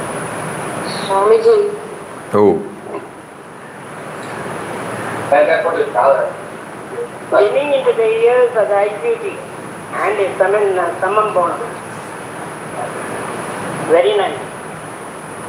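An elderly man speaks calmly and slowly, close to a microphone.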